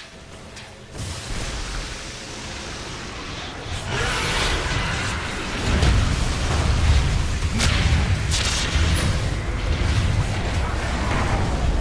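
Magic spells crackle and explode in a fierce video game battle.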